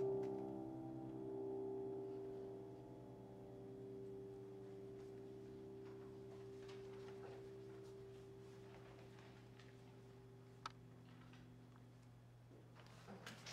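A piano chord rings out and slowly fades.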